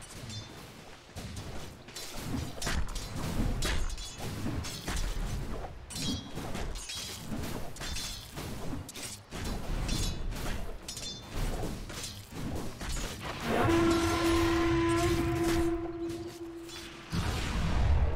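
Game combat effects clash and crackle with quick hits and spell blasts.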